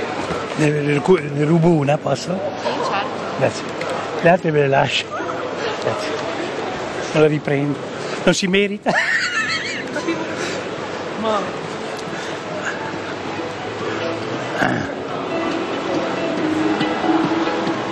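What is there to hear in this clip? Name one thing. A crowd of people chatters in a large, echoing hall.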